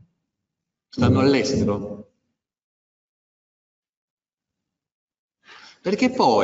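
A middle-aged man speaks calmly into a close microphone.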